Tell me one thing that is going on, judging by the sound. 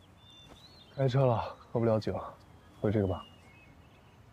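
A young man speaks calmly nearby, outdoors.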